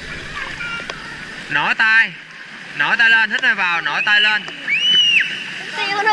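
A child splashes while swimming.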